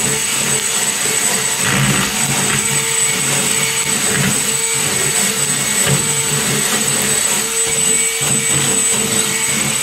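A cordless drill whirs as a wire brush scrubs rust off a steel floor.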